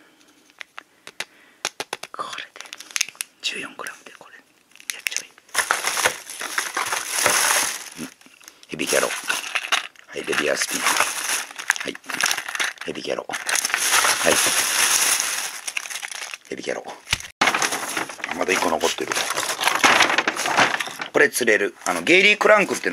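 Plastic packaging crackles in hands.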